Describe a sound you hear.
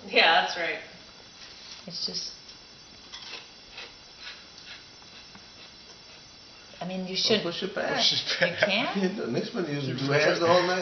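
A wooden block scrapes softly as it is pulled from a stack.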